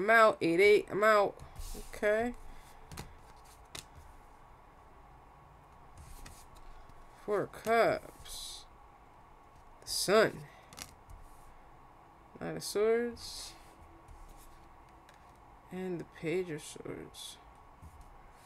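A young woman speaks calmly and close to a microphone, in short phrases with pauses.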